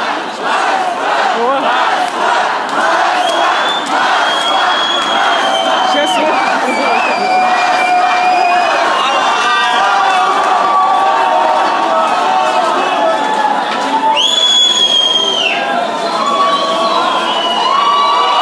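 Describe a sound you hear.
A large crowd chants and shouts loudly in a big echoing underpass.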